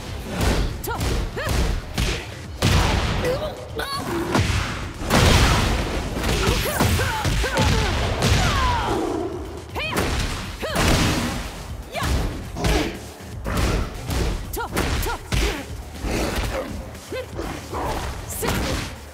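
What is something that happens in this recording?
Punches and kicks land with sharp smacks in a fighting game.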